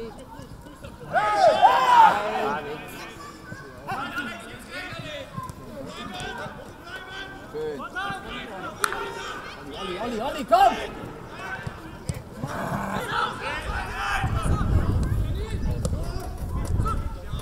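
Young men shout to each other across an open pitch outdoors.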